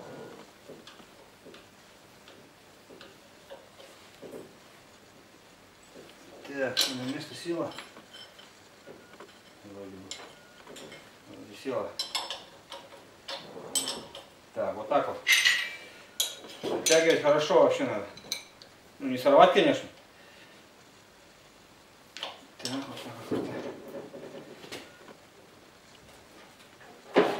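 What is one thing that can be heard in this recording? Metal parts clink and rattle as they are handled.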